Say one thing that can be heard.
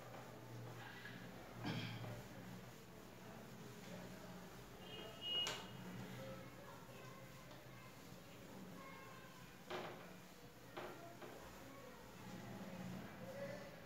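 A board eraser rubs and squeaks across a whiteboard.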